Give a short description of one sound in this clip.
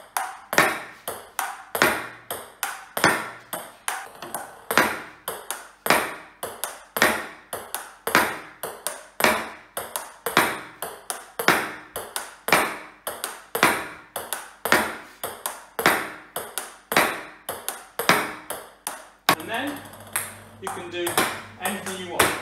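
A ping pong ball clicks rapidly on a table in a steady rally.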